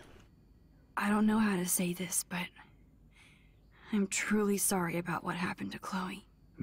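A man speaks softly and apologetically.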